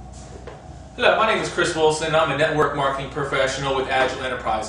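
A man speaks calmly and clearly into a close microphone.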